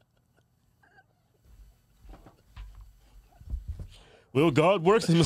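Two men laugh heartily close to microphones.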